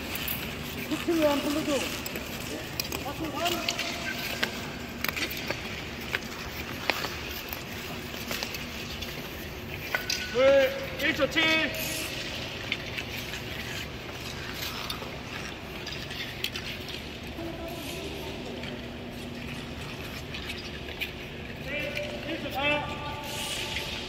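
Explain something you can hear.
Young people call out in a large echoing hall.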